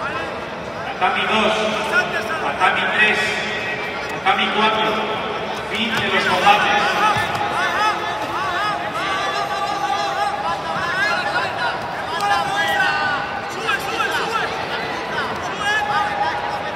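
A crowd of men and women shout encouragement in a large echoing hall.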